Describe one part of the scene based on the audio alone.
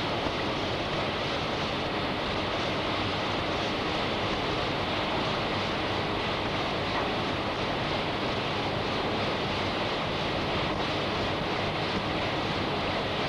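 Rain drums on an umbrella.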